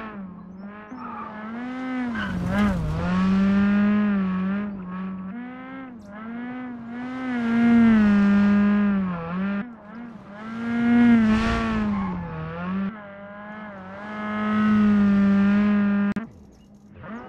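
A turbocharged four-cylinder rally car engine revs hard and shifts through the gears.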